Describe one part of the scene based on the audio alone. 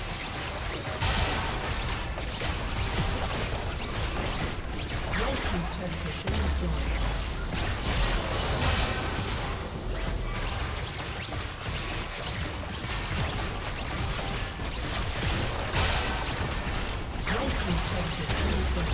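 Game spell effects and attacks crackle and whoosh in quick bursts.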